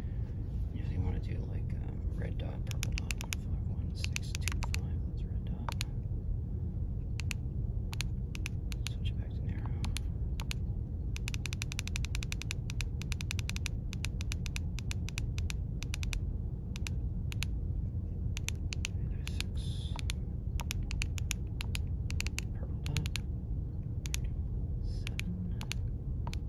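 Short beeps sound as buttons on a handheld radio are pressed.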